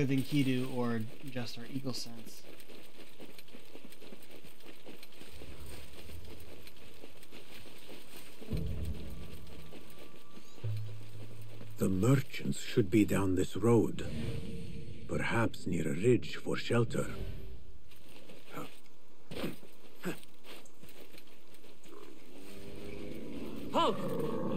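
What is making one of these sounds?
Footsteps run through grass and brush.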